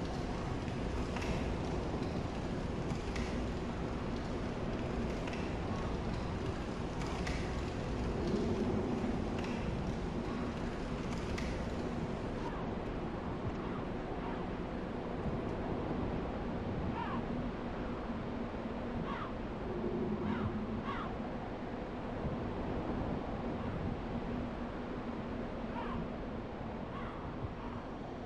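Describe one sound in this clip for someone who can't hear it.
Armoured footsteps clank on stone at a running pace.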